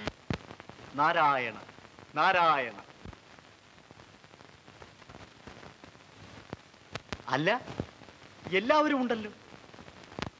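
A man cries out with long, wailing calls.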